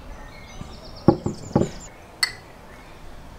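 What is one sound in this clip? Wine pours from a clay jug into a glass.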